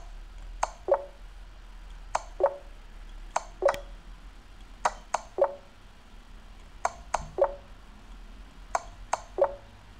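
Chess pieces click into place in quick pairs, again and again.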